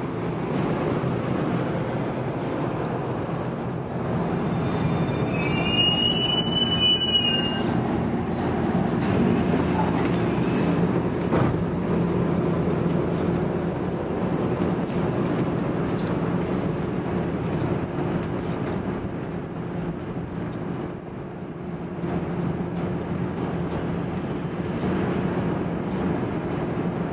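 A stopped electric train hums steadily close by.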